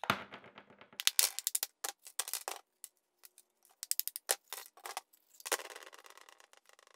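Broken plaster fragments clatter onto a metal tray.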